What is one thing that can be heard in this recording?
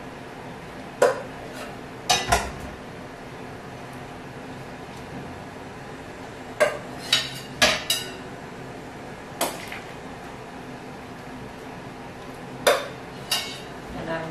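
A metal ladle clanks against a metal pot and bowl.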